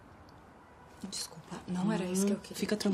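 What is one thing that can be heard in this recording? A young woman speaks close by, tense and emotional.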